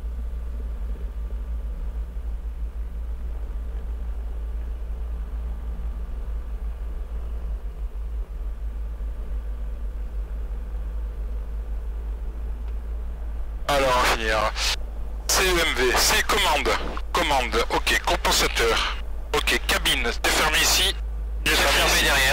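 A small propeller plane's engine drones in the distance.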